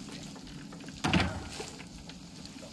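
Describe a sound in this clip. A wooden door creaks shut with a thud.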